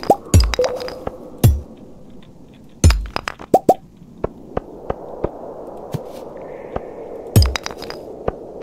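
A pickaxe strikes rock with sharp, heavy knocks.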